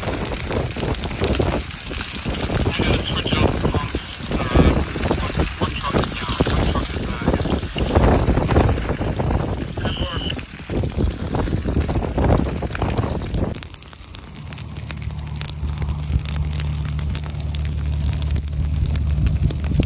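A grass fire roars and crackles loudly.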